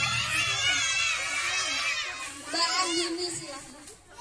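Young children sing together loudly over a loudspeaker.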